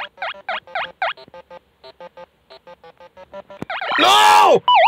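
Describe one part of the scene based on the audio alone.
Chiptune game music plays in short bouncy beeps.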